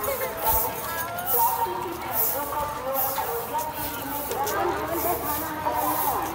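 Many feet shuffle along a paved path.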